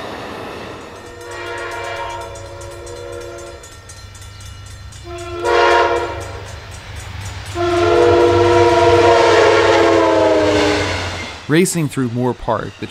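A diesel locomotive engine roars closely as it passes.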